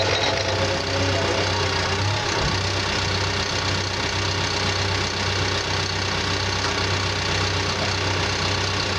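A diesel engine of a bulldozer idles with a steady low rumble.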